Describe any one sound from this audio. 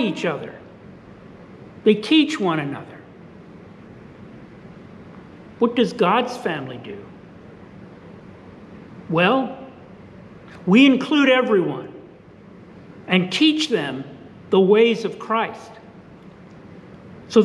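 An elderly man speaks expressively in short phrases with pauses, close to a microphone.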